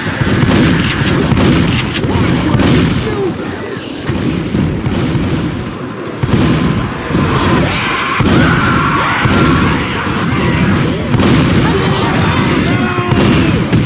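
Zombies snarl and growl nearby.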